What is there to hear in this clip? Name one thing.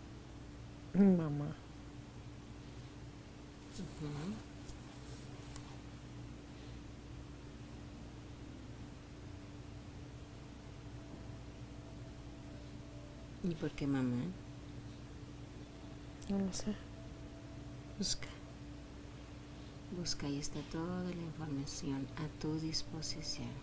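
A woman snores in bursts.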